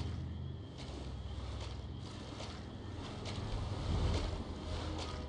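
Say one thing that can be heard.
Footsteps splash slowly through shallow water.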